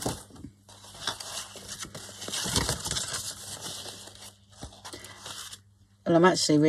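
A sheet of thick paper rustles and crinkles as it is lifted and bent.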